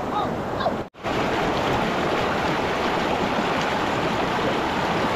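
Water rushes loudly over rocks close by.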